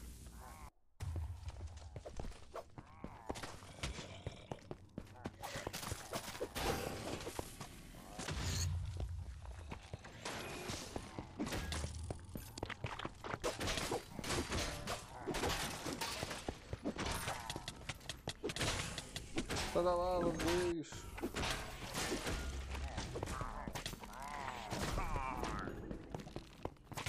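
Weapons strike and clang in quick blows during a game battle.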